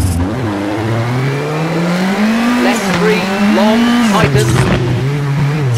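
A rally car engine revs hard, its pitch climbing and dropping with each gear change.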